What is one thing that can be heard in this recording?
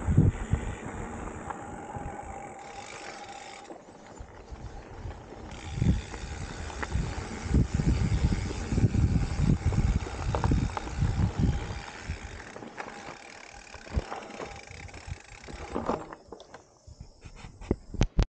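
A mountain bike rattles and clanks over bumps.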